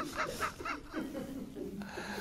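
An elderly man laughs heartily.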